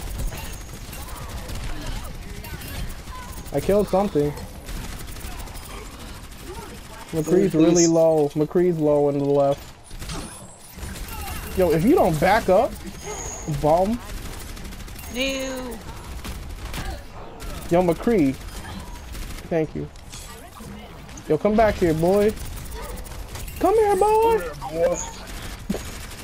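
A futuristic gun fires rapid energy shots.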